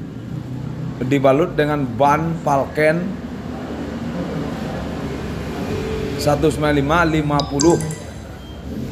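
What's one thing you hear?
A man speaks loudly and with animation nearby.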